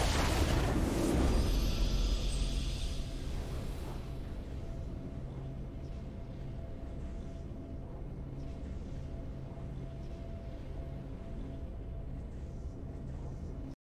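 A triumphant victory fanfare plays and fades.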